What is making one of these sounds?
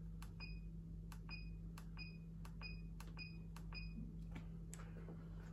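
A control panel beeps as its buttons are pressed.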